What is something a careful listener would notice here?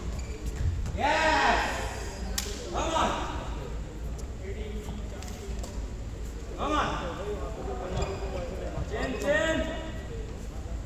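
Sports shoes squeak on an indoor court floor.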